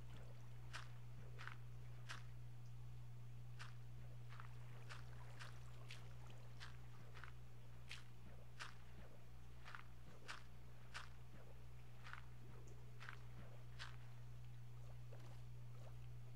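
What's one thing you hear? Stone crunches with short, sharp taps as it is mined, muffled under water.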